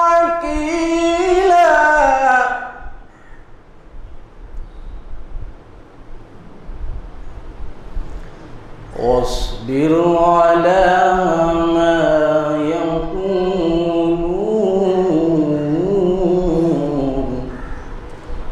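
A young man chants melodically into a microphone, heard through a loudspeaker in an echoing room.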